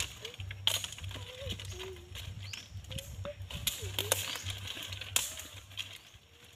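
Dry leaves and twigs rustle and crackle underfoot.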